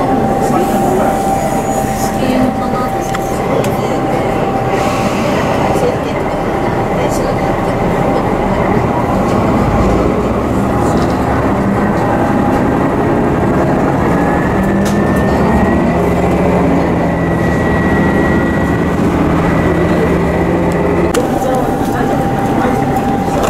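A train rumbles and clatters steadily along the tracks, heard from inside a carriage.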